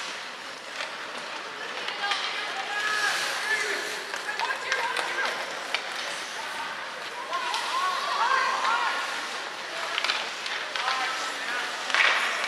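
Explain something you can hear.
Ice skates scrape and carve across the ice in a large echoing arena.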